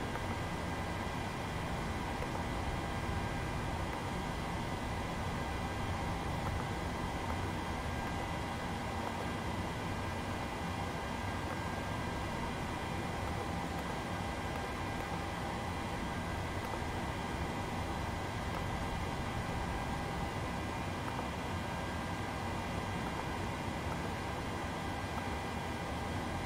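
An aircraft's engines and air system hum steadily.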